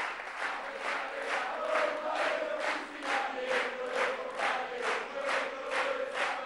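A large crowd chants together.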